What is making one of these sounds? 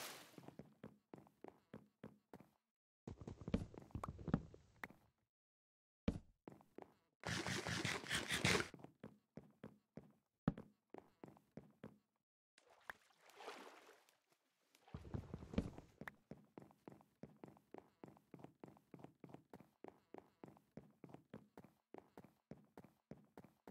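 Footsteps tap on wooden planks at a steady pace.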